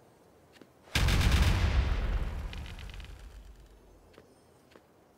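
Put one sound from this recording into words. A game weapon fires with a loud booming blast that slowly fades.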